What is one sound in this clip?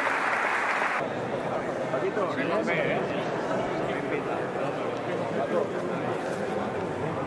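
Many men chatter in a crowd, in an echoing hall.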